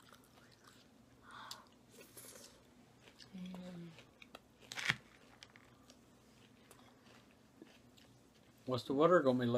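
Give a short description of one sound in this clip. A woman chews crunchy salad close to a microphone.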